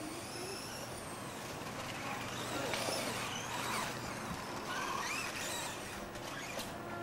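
A small electric motor whines as a toy car races past, rising and falling in pitch.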